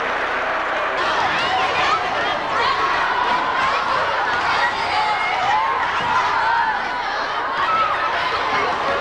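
A crowd of young people shouts and chatters excitedly close by.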